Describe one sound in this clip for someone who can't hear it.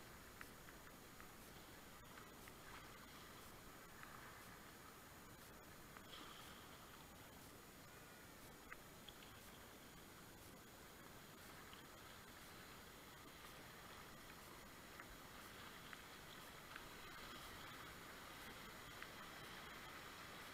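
River rapids rush and splash steadily close by.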